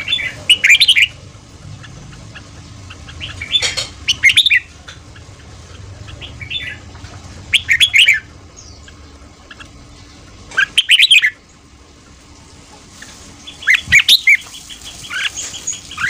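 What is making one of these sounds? A caged bird sings loud, warbling phrases close by.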